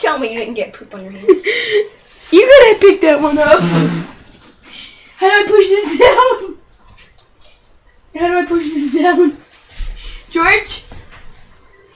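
A young girl sings loudly nearby.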